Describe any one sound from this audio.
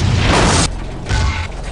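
A vehicle crashes and tumbles with a loud metallic crunch.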